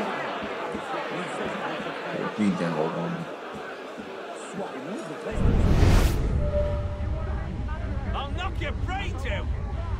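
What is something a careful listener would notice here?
A crowd of men and women murmurs and chatters all around.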